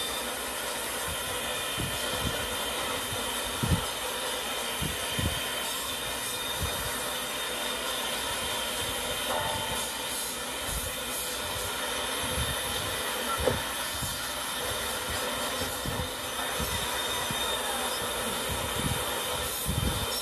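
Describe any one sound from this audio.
Industrial machinery hums and rattles steadily.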